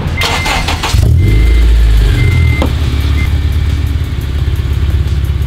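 A car engine starts and rumbles deeply at idle.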